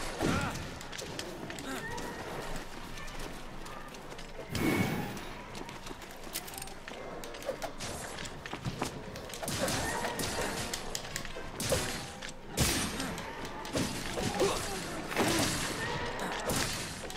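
Blades strike and slash with sharp impacts.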